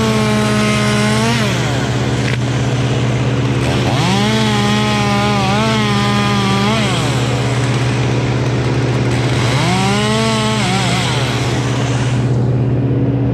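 A chainsaw engine runs loudly close by, revving up and down.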